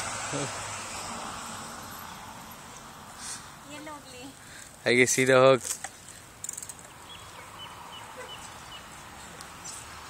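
Bicycle tyres roll quietly over asphalt.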